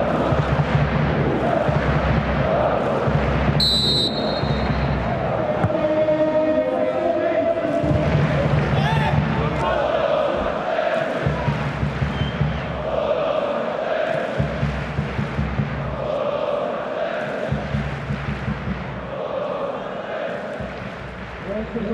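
A stadium crowd chants and sings rhythmically in a large open space.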